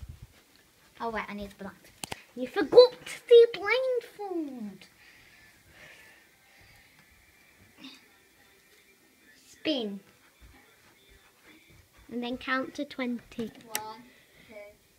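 A young girl talks and laughs close by, with animation.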